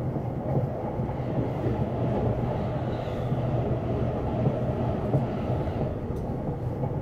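A passing train rushes by close outside with a whooshing roar.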